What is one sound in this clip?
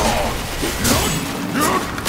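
Fire bursts with a roaring whoosh.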